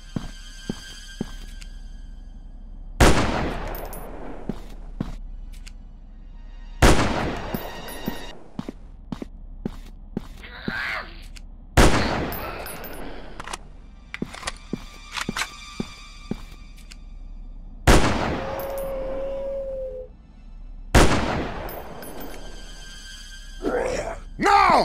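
A rifle bolt clicks metallically.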